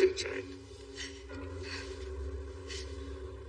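A woman speaks softly up close.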